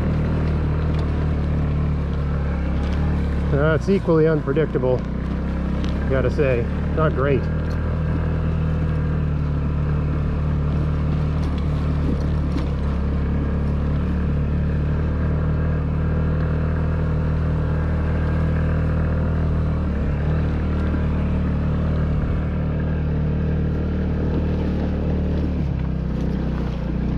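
Tyres rumble over a bumpy dirt track.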